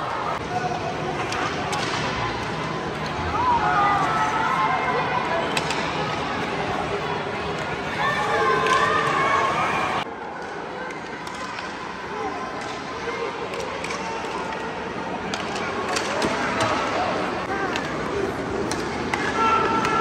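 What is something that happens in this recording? Ice hockey skates scrape and cut across ice.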